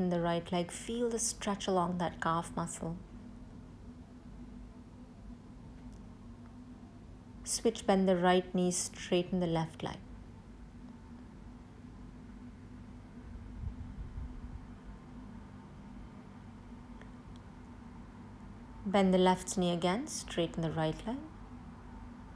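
A woman speaks calmly, giving slow instructions.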